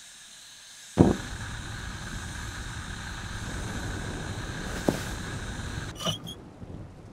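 A candle flame ignites with a soft whoosh and crackles steadily.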